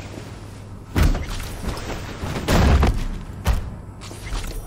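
A metal locker door creaks open and bangs shut.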